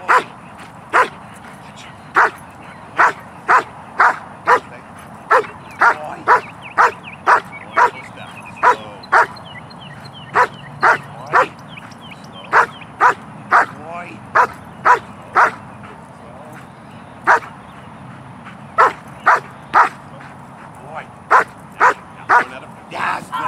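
A large dog barks loudly and repeatedly, close by.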